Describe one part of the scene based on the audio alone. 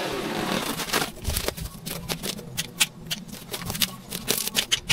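Footsteps rustle and crunch through cut grass.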